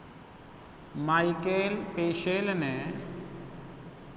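A man speaks briefly and calmly, heard close by.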